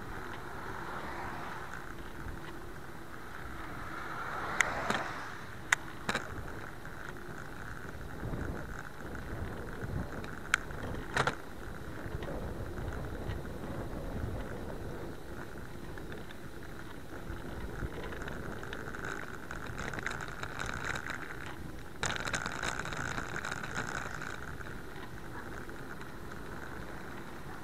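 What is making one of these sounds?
A car passes by.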